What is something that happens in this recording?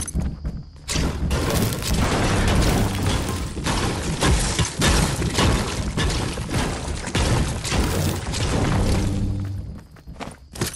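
A pickaxe strikes a wall with repeated hard knocks.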